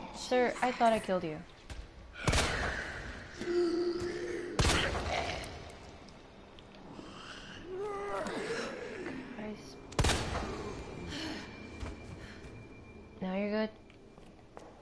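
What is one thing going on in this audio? A young woman talks with animation through a microphone.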